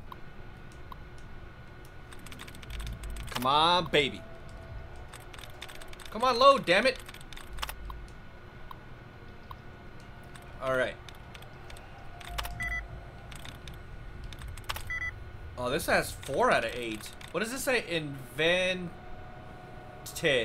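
Keys clatter rapidly as text is typed into a computer terminal.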